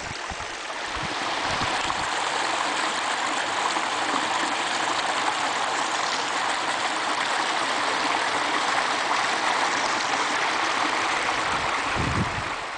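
Water rushes and splashes steadily over rocks.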